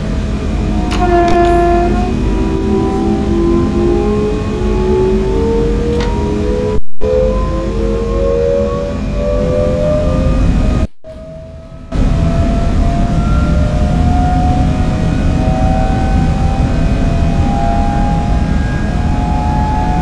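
An electric train motor whines, rising steadily in pitch as the train speeds up.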